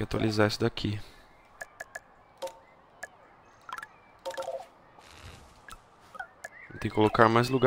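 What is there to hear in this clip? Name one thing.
Short interface clicks tick as menu options are chosen.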